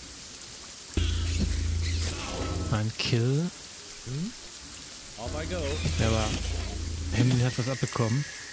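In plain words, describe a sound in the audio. Weapons clash and spells whoosh in a fantasy battle.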